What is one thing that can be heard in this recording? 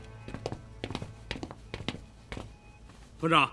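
Boots thud on a hard floor.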